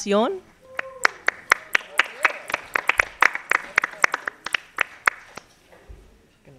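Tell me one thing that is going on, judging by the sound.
A small audience claps and applauds.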